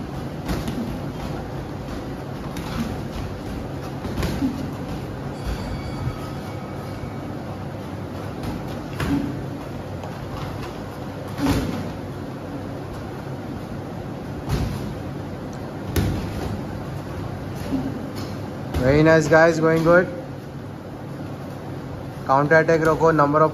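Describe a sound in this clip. Sneakers shuffle and squeak on a padded mat.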